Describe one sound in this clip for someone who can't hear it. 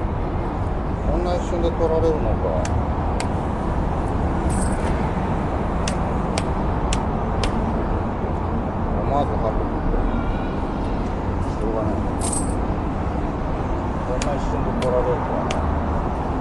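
A young man speaks briefly and casually nearby.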